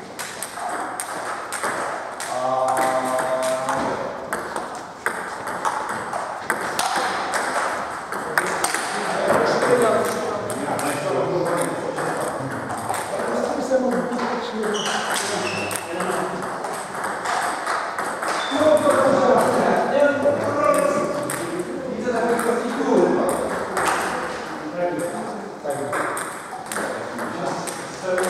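Table tennis balls click on paddles and tables, echoing in a large hall.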